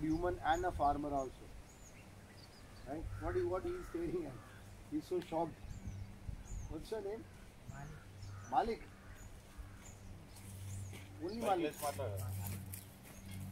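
A man speaks outdoors in short, calm phrases, with pauses, heard from nearby.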